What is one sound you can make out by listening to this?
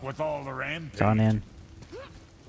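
A man speaks in a deep, calm voice nearby.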